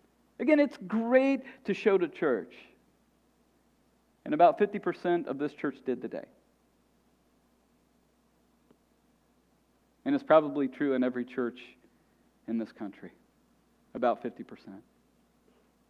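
A middle-aged man speaks calmly and expressively through a headset microphone, pausing between phrases.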